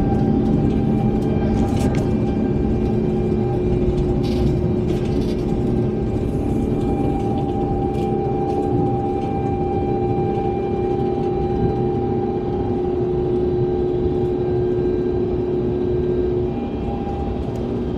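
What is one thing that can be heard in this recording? A jet engine roars loudly and steadily close by.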